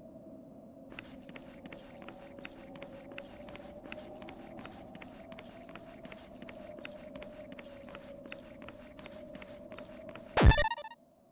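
Footsteps tap at a steady walking pace on hard pavement.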